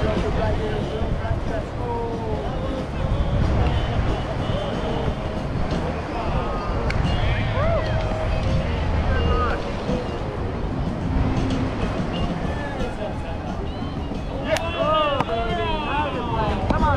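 A crowd of people chatters in the distance.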